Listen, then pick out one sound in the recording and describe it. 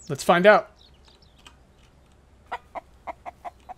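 A chicken clucks in short bursts.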